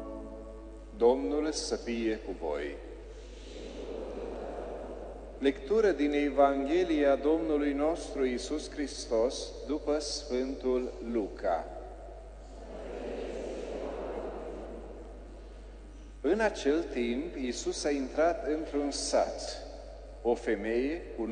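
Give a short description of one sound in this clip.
A middle-aged man speaks calmly through a microphone, echoing in a large hall.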